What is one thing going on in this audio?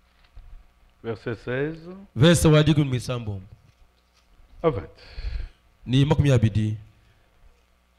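A man speaks into a microphone in a slow, heartfelt way, with long pauses.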